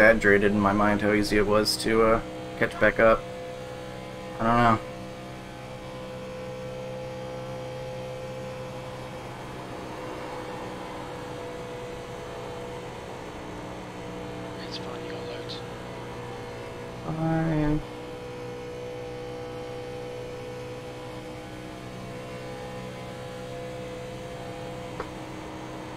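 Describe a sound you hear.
A race car engine drones steadily at high speed.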